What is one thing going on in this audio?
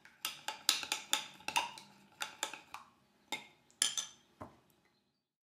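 A spoon clinks against a glass cup while stirring.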